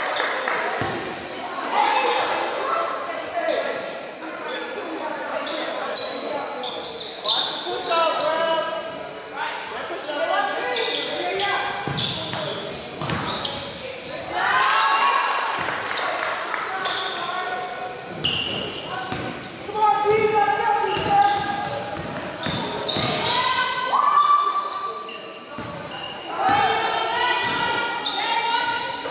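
Young women shout and call out to each other on the court.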